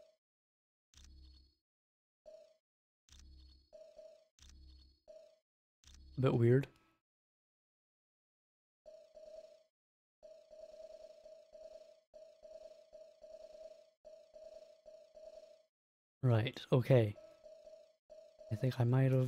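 Short electronic beeps sound as a menu cursor steps through a list.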